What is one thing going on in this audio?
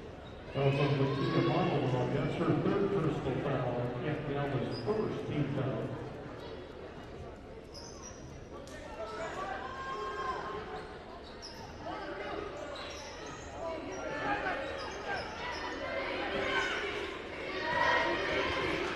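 A crowd of spectators murmurs and calls out in a large echoing hall.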